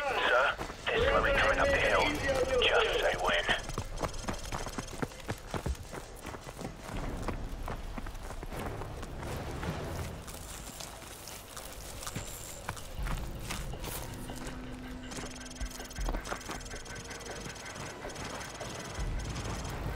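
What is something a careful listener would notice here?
Footsteps crunch quickly over gravel and grass.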